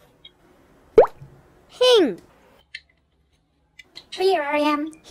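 Plastic toy parts click and clack together.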